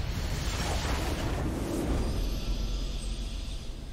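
A triumphant musical fanfare plays.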